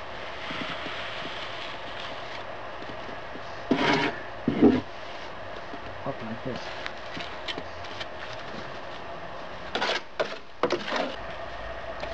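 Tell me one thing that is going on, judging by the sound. Wet cement scrapes and pats under a gloved hand.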